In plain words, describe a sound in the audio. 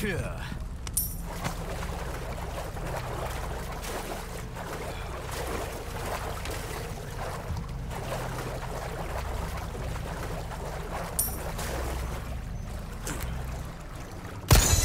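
Footsteps splash and slosh through shallow water.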